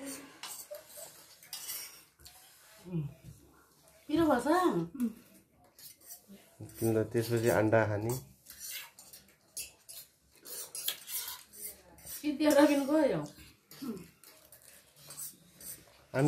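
Spoons clink and scrape on plates.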